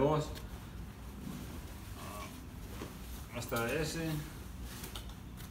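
Clothes rustle as they are tossed into a basket.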